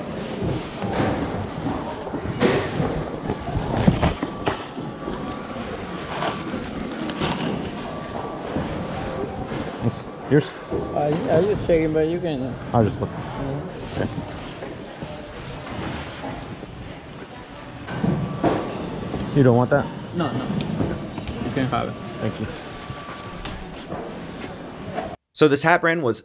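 Bags and clothes rustle as they are rummaged through.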